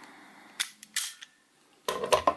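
A plastic pistol clicks as it is handled.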